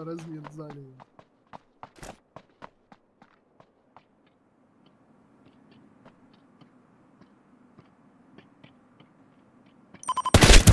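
Footsteps tap on a hard floor at a walking pace.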